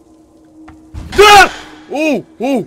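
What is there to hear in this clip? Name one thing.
A young man exclaims loudly in surprise.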